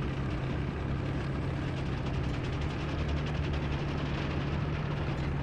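Tank tracks clatter and squeak as the tank drives.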